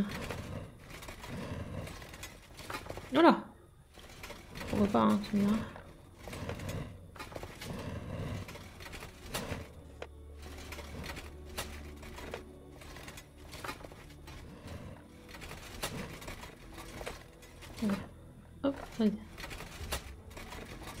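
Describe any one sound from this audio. Stone pieces of a puzzle click and grind as they turn.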